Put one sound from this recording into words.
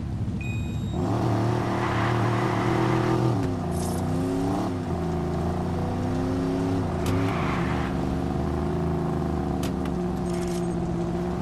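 A car engine roars and revs as the car speeds away.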